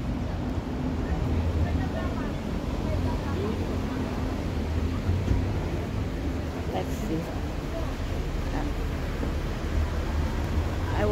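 An elderly woman talks calmly, close by.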